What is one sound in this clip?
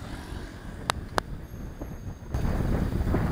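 Bicycle tyres roll on a paved road.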